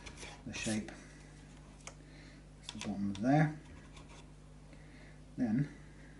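A small tool clicks and scrapes on a board.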